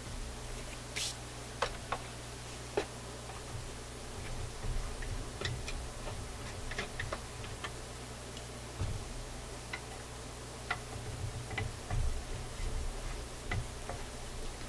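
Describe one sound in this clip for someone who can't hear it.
Small metal clicks and taps come from a screwdriver working on a panel.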